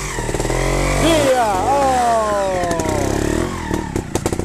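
A motorcycle engine revs up hard, then its pitch slides down as it slows.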